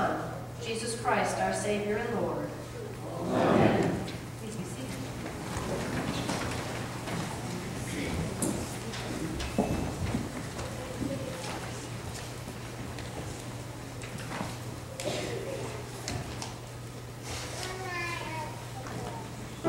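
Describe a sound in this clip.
A man speaks over a loudspeaker in an echoing hall.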